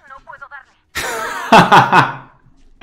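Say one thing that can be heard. A young man laughs loudly and heartily into a microphone.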